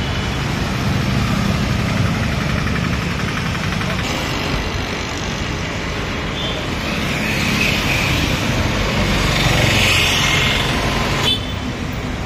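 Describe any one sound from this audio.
A motorcycle engine passes close by.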